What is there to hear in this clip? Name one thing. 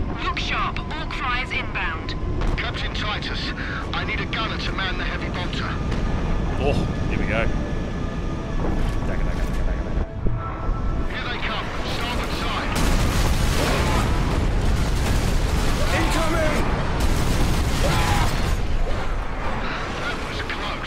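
Aircraft engines roar steadily overhead.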